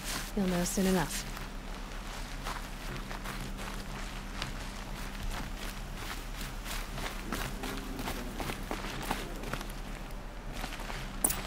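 Footsteps crunch through grass and over rock.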